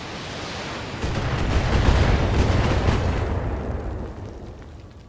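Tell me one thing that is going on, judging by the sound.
A vehicle explodes with a loud, deep boom that rumbles and fades.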